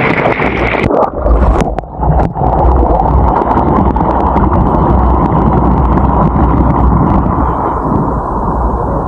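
Water gurgles and bubbles close by, muffled as if heard under the surface.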